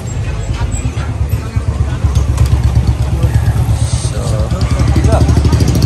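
Motorcycle engines rumble past close by.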